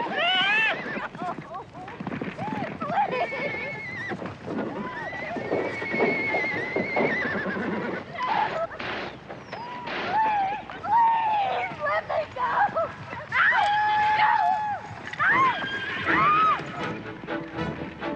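Horses gallop with thudding hooves.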